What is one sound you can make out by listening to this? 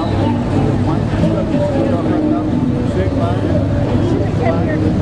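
A crowd chatters nearby outdoors.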